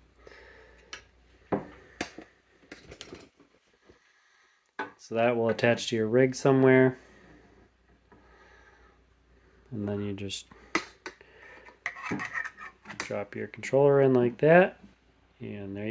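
Metal parts click and knock together as they are handled.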